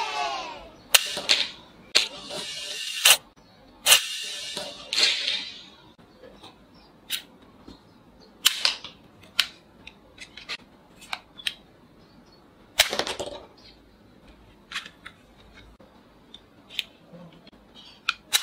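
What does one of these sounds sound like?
A toy gun fires darts with sharp plastic pops.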